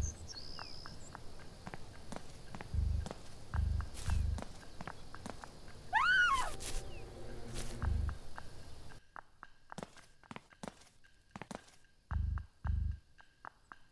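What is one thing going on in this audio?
Footsteps tap steadily on a hard surface.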